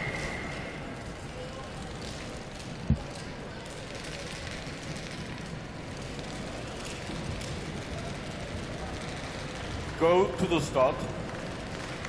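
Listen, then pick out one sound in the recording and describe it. Skate blades scrape and glide on ice in a large echoing hall.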